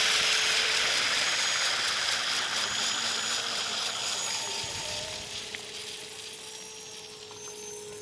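Rotor blades whoosh as they spin and slowly fade.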